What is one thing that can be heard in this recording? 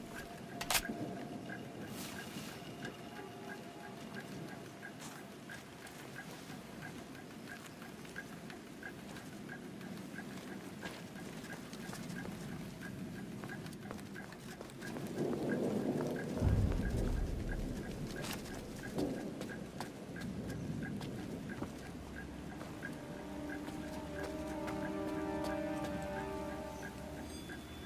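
Footsteps crunch over rubble and gravel.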